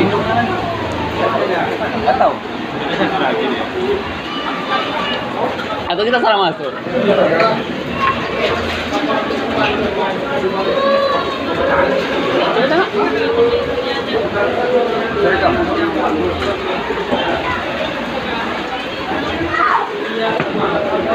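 Young men talk with animation close by.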